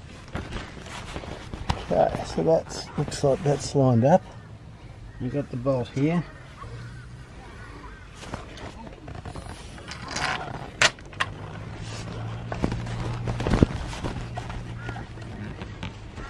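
Canvas fabric rustles and scrapes as hands pull at it.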